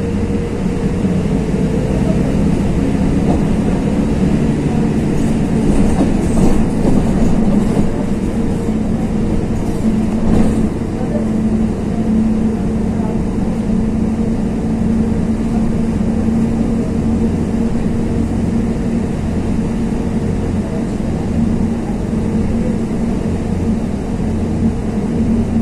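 A vehicle engine hums steadily from inside a moving car.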